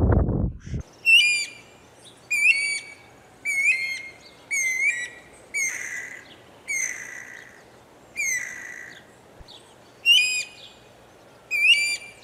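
Small birds chirp in short, sharp bursts.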